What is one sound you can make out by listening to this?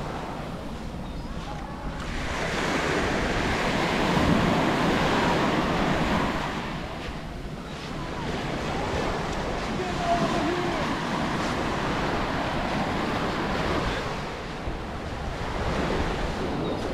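Small waves wash up and break gently on a sandy shore.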